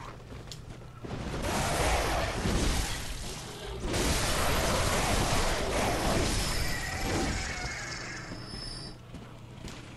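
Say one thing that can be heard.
Game combat sounds clash and thud loudly.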